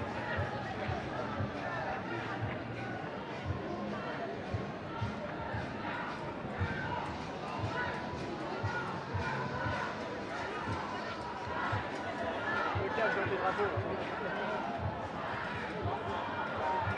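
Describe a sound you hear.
Footsteps shuffle along a street.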